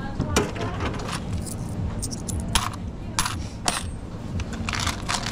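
Coins clink and jingle in a hand.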